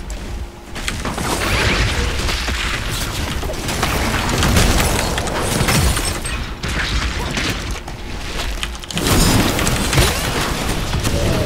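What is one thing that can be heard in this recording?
Game spell effects whoosh and clash in quick bursts.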